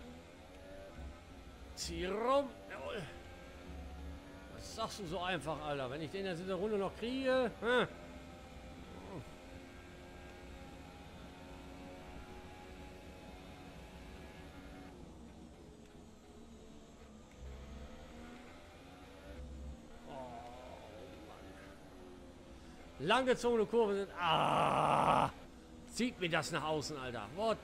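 A racing car engine whines, rising in pitch as it speeds up and dropping when it slows.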